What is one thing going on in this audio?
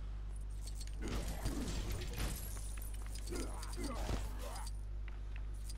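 Magic energy blasts zap and crackle.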